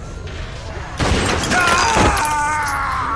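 A gunshot bangs.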